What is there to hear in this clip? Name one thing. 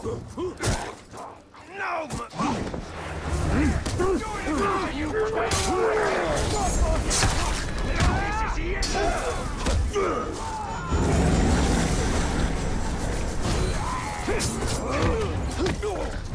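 Blades clash and thud in a close fight.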